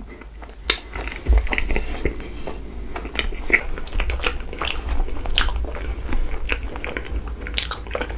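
Soft rice cakes are squished and pulled apart by hand close to a microphone.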